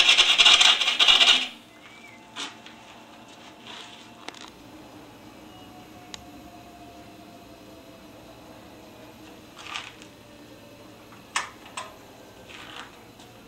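A lathe hums steadily as it spins.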